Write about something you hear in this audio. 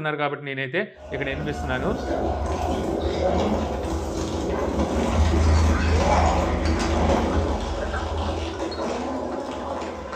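A soundbar plays film sound with deep rumbling bass.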